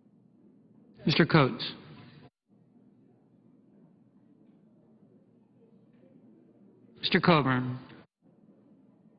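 A man calls out briefly over a microphone in a large echoing hall, twice, with long pauses between.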